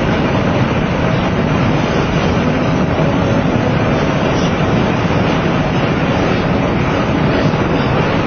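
A car drives fast along a highway, with steady road and wind noise rushing past.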